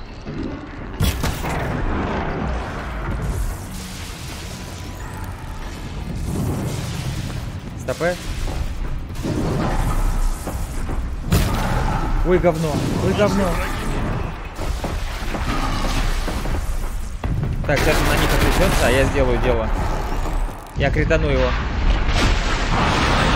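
Game explosions and weapon blasts boom and crackle.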